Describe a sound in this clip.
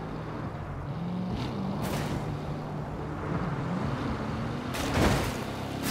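Tyres skid and screech.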